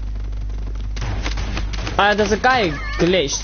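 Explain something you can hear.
A gun fires several quick shots.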